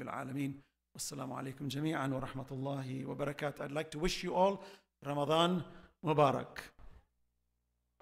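A man chants through a microphone in an echoing hall.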